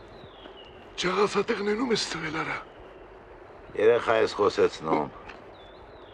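Another elderly man answers close by.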